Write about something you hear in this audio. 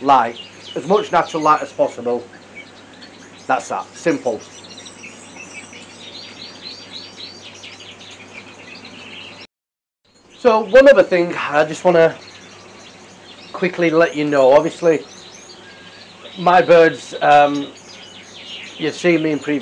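A man talks nearby in a calm, animated way.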